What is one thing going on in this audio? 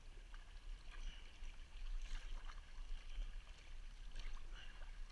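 A paddle splashes and dips into calm water in steady strokes.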